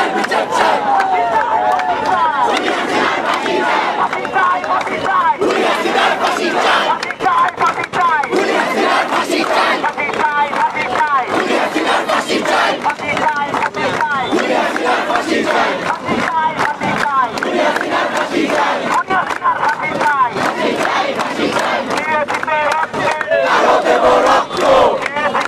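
A crowd of young men and women chants loudly outdoors.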